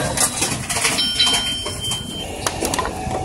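A machine beeps.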